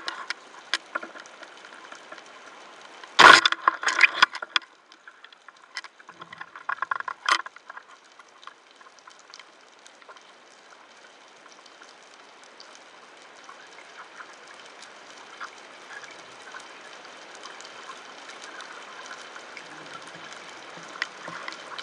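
A soft underwater hiss with faint crackling goes on throughout.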